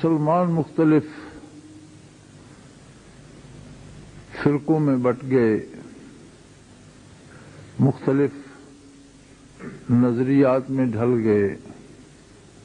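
An elderly man speaks slowly and deliberately into a microphone, with long pauses between phrases.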